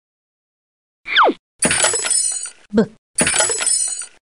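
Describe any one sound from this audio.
A wooden crate bursts apart with a cartoon crash.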